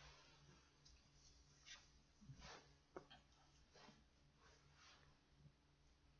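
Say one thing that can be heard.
Cloth rustles as a man wraps it around his head.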